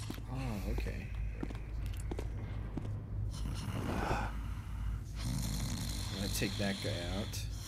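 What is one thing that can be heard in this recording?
Footsteps tread softly on a stone floor.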